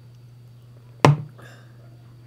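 A mug is set down on a table with a knock.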